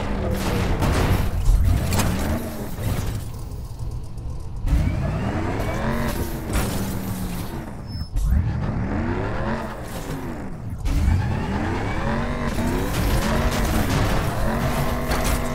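Metal crashes and scrapes against a wall.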